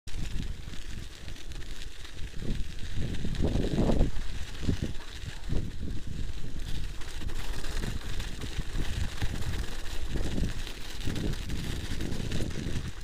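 Bicycle tyres crunch over packed snow.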